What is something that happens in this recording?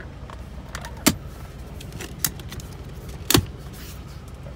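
A hand taps on a leather car seat.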